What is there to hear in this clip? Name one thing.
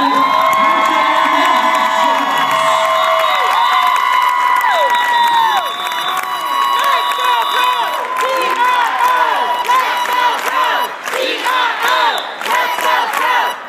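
A crowd of young girls screams and cheers loudly in a large echoing hall.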